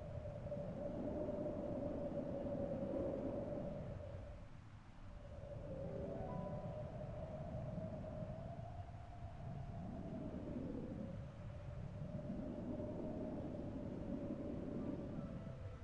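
Targeting lasers hum steadily.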